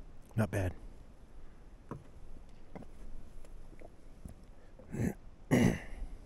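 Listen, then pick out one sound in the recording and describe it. A thermos cup bumps and knocks lightly.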